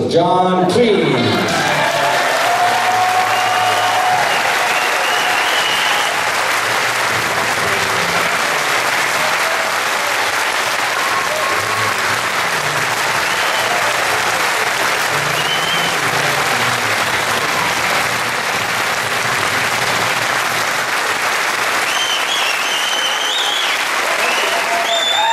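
A large audience applauds and cheers loudly in a big hall.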